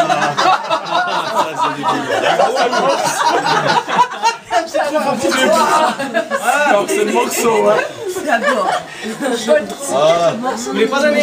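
Several men and women talk and chatter close by.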